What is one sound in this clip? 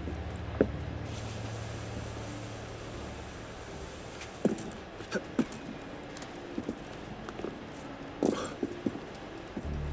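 Soft thuds and scuffs of climbing and footsteps sound on stone.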